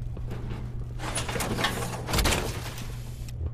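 A heavy mechanical suit clanks and hisses as it locks shut.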